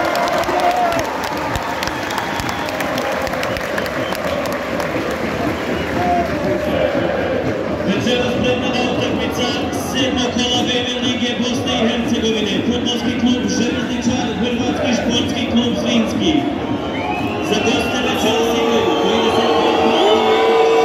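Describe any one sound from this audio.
A crowd roars and cheers in an open stadium.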